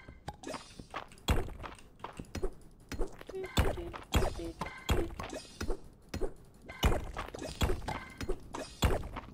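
Rocks are struck repeatedly with a pickaxe in sharp, regular chops.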